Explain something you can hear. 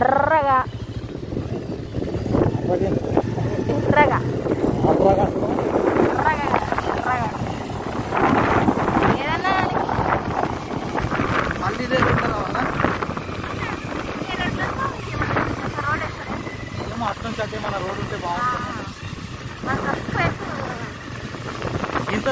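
A motorcycle engine hums as it rides along a dirt road.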